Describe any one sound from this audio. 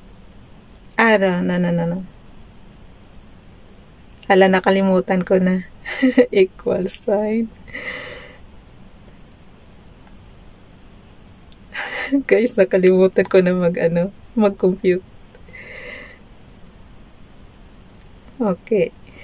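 A middle-aged woman speaks close to a microphone, calmly and in short bursts.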